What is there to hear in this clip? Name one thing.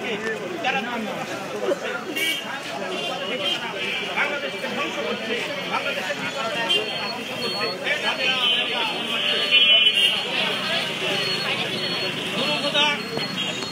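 Footsteps shuffle on a wet street.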